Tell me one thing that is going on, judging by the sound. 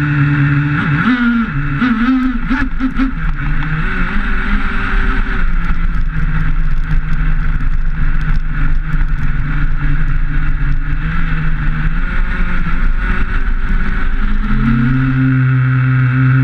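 A small electric motor whines up and down in pitch as a toy car speeds along.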